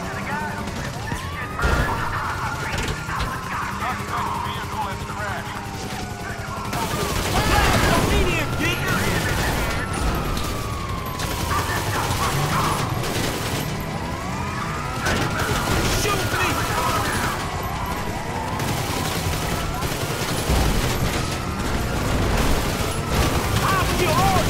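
A car engine roars at speed.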